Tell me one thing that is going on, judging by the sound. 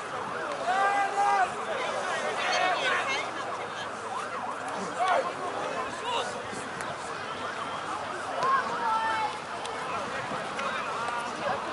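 Rugby players shout to each other outdoors.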